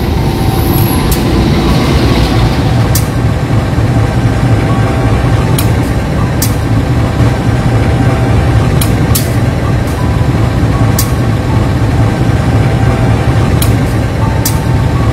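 A locomotive engine rumbles steadily from inside the cab.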